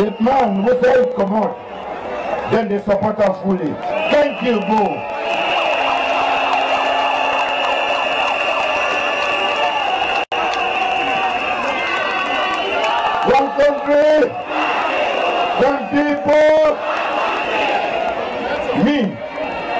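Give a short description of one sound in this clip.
A man shouts with animation through a loudspeaker outdoors.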